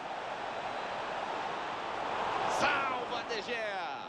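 A football is struck hard with a boot.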